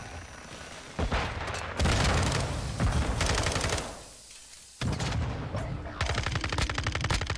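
Rapid gunfire bursts out in loud automatic volleys.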